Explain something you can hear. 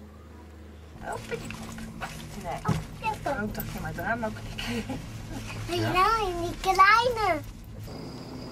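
A young child talks in a high voice, close by.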